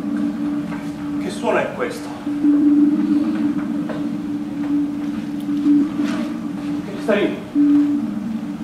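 A man speaks out loudly in a large echoing hall.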